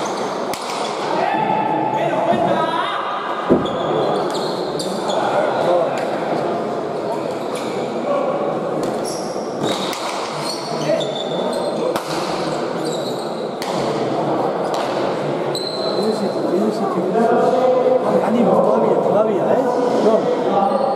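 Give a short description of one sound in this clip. A ball smacks hard against a wall, echoing through a large hall.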